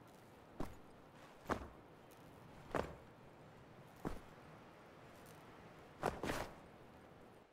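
Heavy footsteps thud on stone at a slow pace.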